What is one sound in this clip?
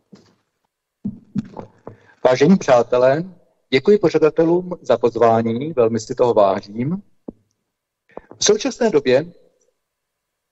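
A man speaks into a microphone at a steady pace.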